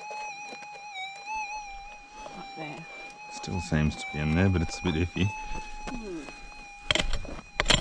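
A metal detector hums a steady high tone.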